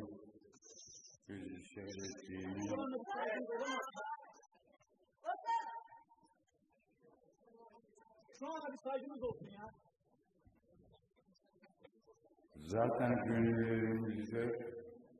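An elderly man speaks slowly into a microphone, heard through loudspeakers in a large hall.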